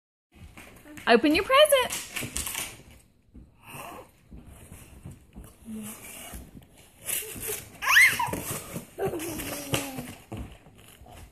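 A young girl squeals and laughs excitedly close by.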